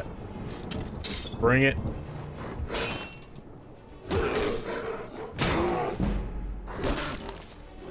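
A bear growls and roars.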